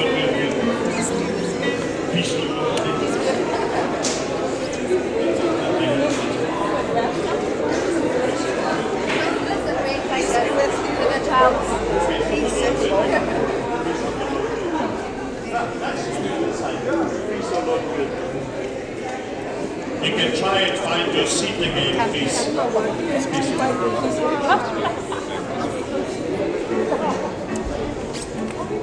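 A crowd of men and women chatter all around in an echoing hall.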